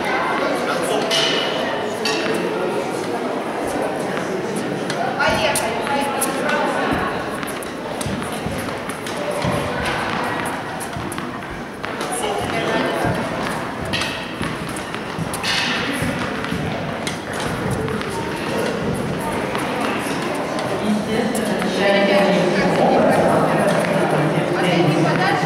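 Tennis balls bounce and are struck by rackets, echoing in a large hall.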